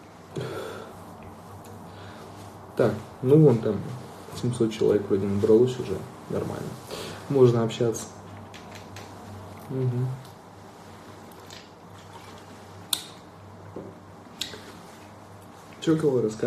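A young man talks casually and close up into a phone microphone.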